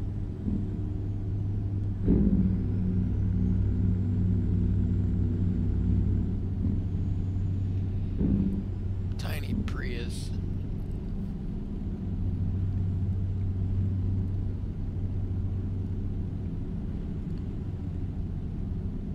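A truck engine hums steadily at a low pitch.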